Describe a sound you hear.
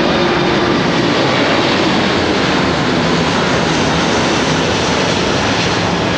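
A large jet airliner roars loudly overhead at low altitude.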